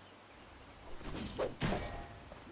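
Magical spells crackle and burst in a fight.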